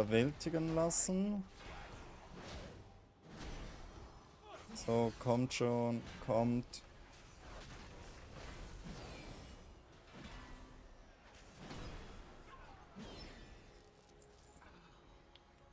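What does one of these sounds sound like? Game weapons clash and spells crackle in a fight.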